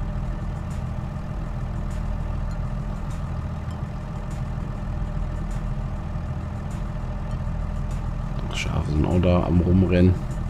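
A tractor engine hums steadily at idle.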